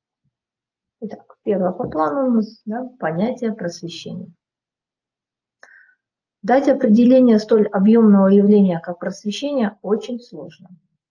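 A woman speaks calmly into a microphone, heard as if in an online lesson.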